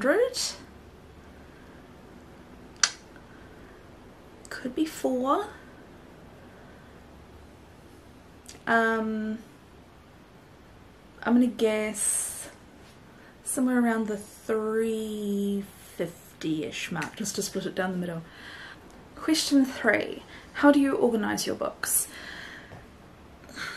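A woman speaks expressively and close to a microphone, with pauses between phrases.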